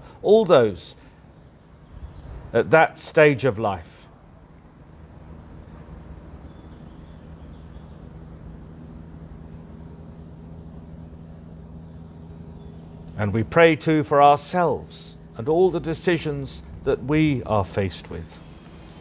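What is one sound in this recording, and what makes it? An older man speaks calmly into a microphone, with long pauses.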